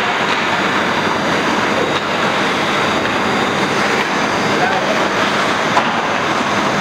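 Ice skates scrape and carve on ice in a large echoing indoor rink.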